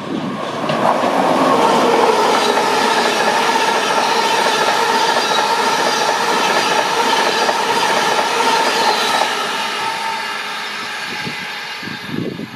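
A train rushes past close by with a loud roar that fades away.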